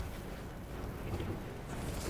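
A fiery burst crackles and whooshes.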